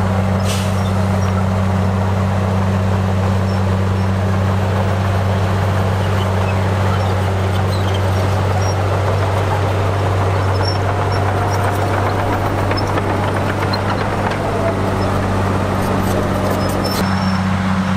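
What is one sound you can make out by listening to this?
Dirt and rocks scrape and tumble as a bulldozer blade pushes them.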